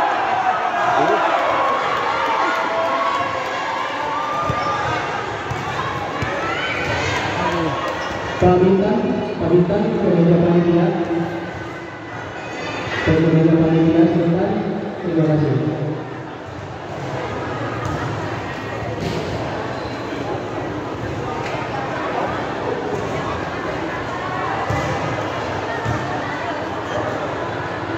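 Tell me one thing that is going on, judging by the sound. A large crowd chatters and calls out in an echoing hall.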